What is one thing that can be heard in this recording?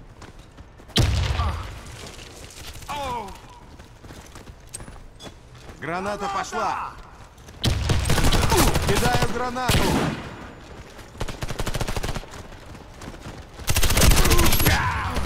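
A rifle fires loud bursts of gunshots.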